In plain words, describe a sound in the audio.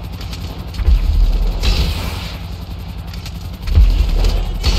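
A rocket launcher fires with a loud whoosh.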